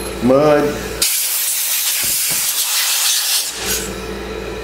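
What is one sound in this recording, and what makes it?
Compressed air hisses in a steady burst.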